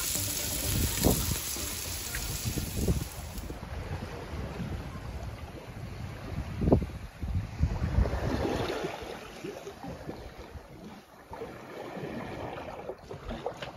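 Waves wash and splash against the side of a boat.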